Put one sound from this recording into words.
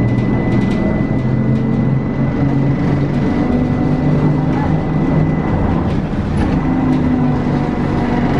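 A vehicle engine hums steadily while driving along a street.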